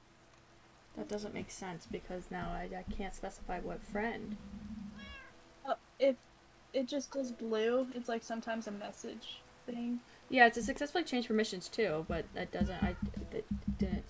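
A young woman talks with animation into a microphone, close up.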